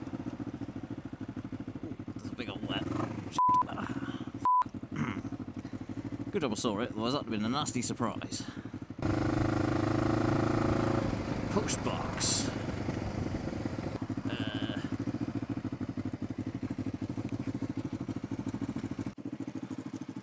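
A motorcycle engine hums steadily, growing louder as it speeds up and then easing off.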